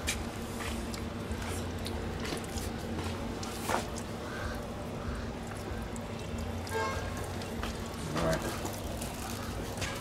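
Water runs from a tap into a basin.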